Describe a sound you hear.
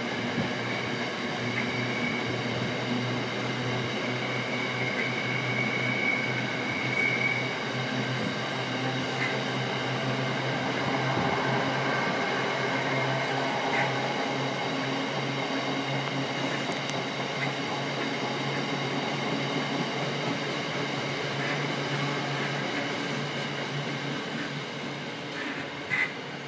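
A freight train rumbles steadily past with wheels clattering and squealing on the rails.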